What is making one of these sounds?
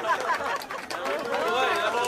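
A middle-aged man laughs heartily.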